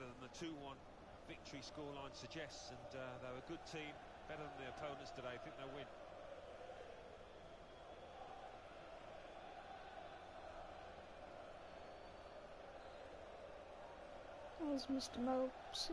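A stadium crowd murmurs in the distance.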